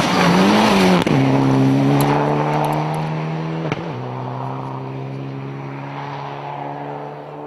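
A rally car engine roars at full throttle, then fades into the distance.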